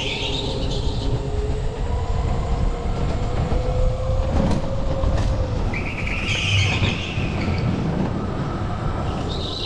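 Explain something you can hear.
A go-kart engine whines and rumbles steadily up close.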